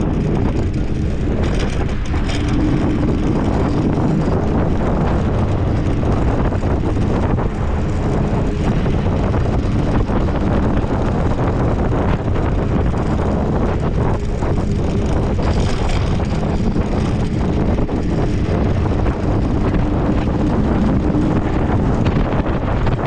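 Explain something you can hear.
Wind rushes loudly and roughly past.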